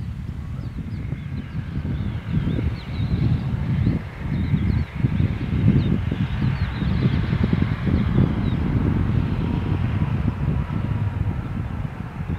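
A jet airliner's engines rumble and whine as it passes low overhead.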